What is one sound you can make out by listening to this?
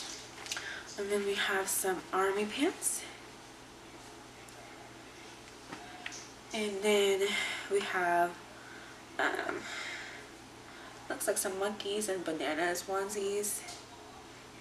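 A young woman talks close to the microphone, calmly and with animation.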